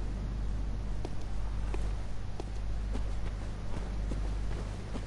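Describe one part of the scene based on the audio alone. Footsteps tread steadily on stone.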